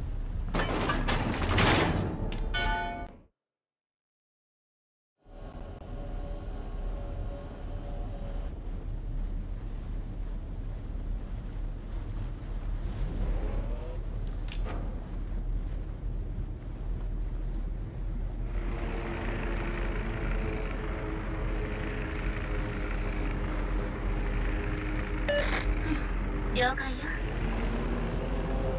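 Water rushes and splashes along a ship's hull.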